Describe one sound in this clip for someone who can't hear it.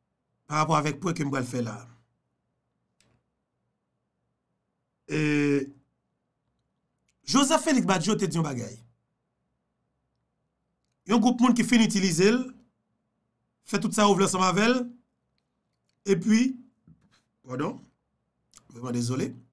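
A man speaks close to a microphone in short bursts, with pauses between them.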